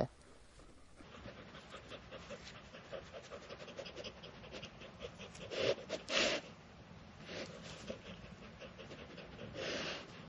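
A dog rustles through dry grass.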